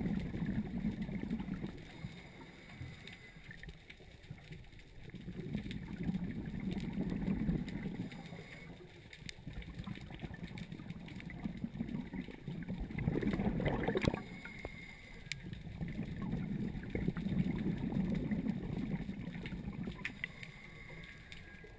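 Air bubbles rumble and gurgle in bursts.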